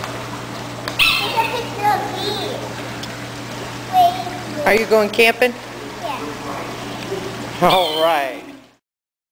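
A young girl talks and squeals with excitement close by.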